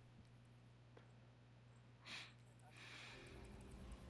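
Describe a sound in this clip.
A soft menu click sounds.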